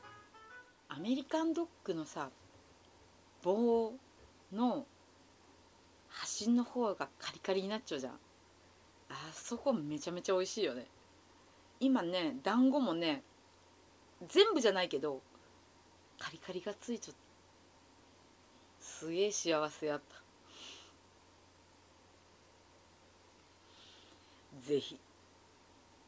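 A young woman talks animatedly and close by.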